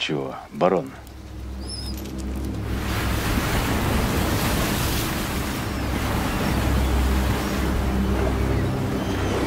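Waves wash and break on the shore.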